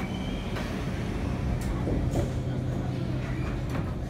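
Metro train doors slide shut.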